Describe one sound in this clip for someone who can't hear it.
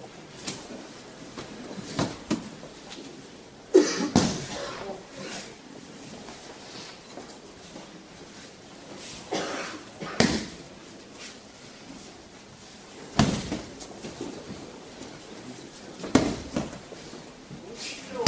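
Bare feet shuffle and slap on a mat.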